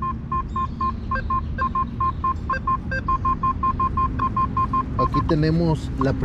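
A metal detector beeps in quick, regular short pulses, now and then with a higher tone.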